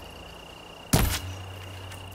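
A bowstring snaps sharply as an arrow is loosed.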